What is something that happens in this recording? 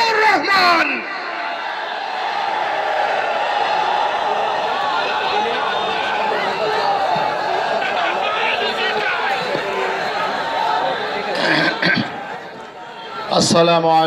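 A large crowd murmurs and chatters.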